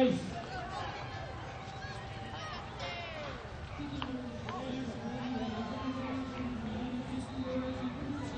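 A crowd of adults and children chatters and calls out outdoors.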